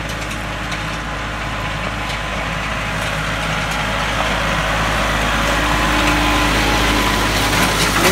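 Tyres crunch over loose gravel.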